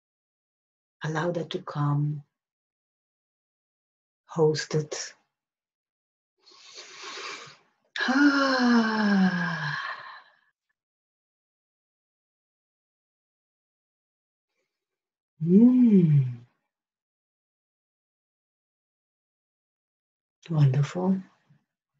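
A woman speaks calmly and softly close to a microphone, in short phrases with long pauses.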